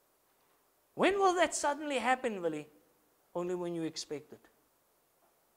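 A man speaks calmly into a microphone, heard through a loudspeaker, in short phrases with pauses.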